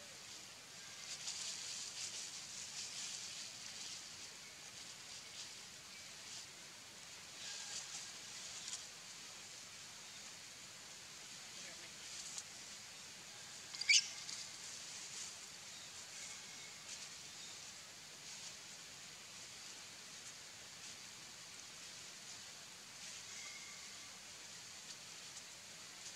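Small monkeys scamper and rustle over dry leaves and dirt.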